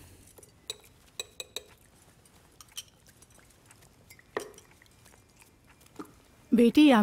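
Cutlery clinks on plates.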